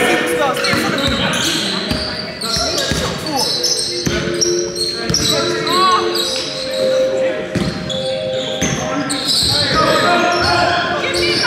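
Young men call out to one another across the echoing hall.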